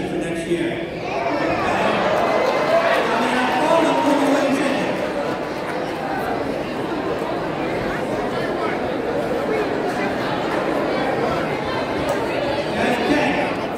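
An audience cheers and chatters loudly in a large hall.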